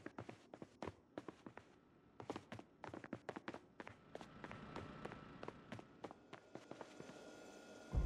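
Footsteps tap quickly on a wooden floor.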